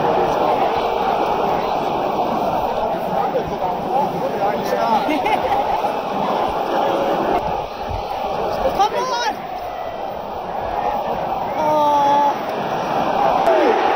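A large stadium crowd chants and roars loudly all around.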